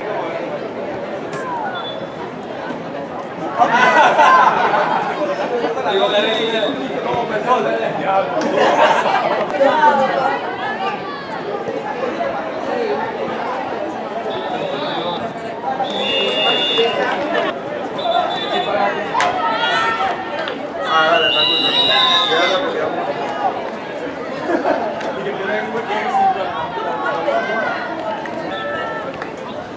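Young men and women shout and call to each other across an open field outdoors.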